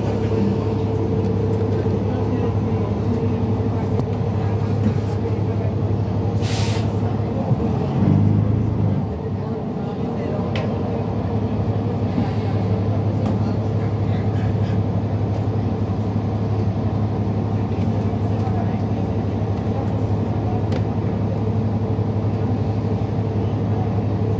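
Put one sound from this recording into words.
A vehicle's engine hums steadily from inside.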